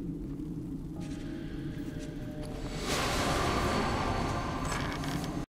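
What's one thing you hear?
A bright magical chime swells as a treasure chest opens.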